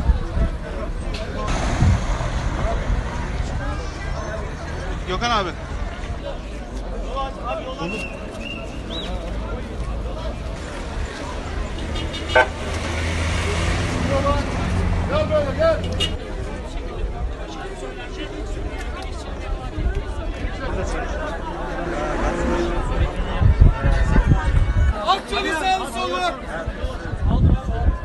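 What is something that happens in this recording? A large crowd murmurs and talks outdoors.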